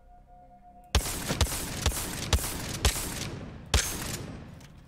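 A pistol fires a rapid series of sharp shots.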